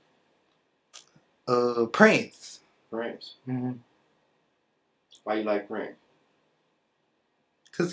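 A young man speaks calmly and close by, in short phrases with pauses.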